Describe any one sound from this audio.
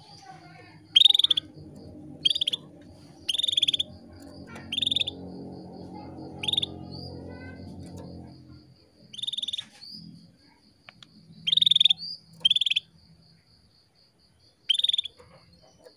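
A small caged bird sings short, loud, chirping bursts close by.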